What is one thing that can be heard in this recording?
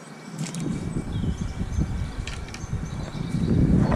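A fishing rod swishes through the air as a line is cast.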